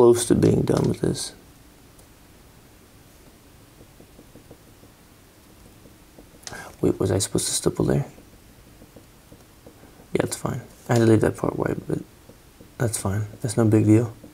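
A felt-tip marker scratches softly on paper.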